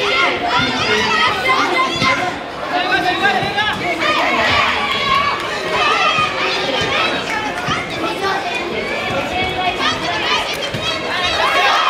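Punches thud against fighters' bodies.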